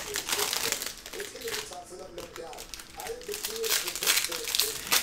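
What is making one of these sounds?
Foil wrapping crinkles and tears.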